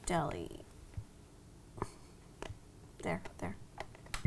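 Fingertips tap lightly on a tablet.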